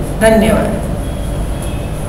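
A middle-aged woman speaks briefly, close by.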